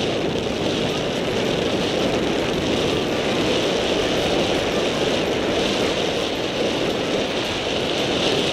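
Skis hiss and scrape along snow tracks.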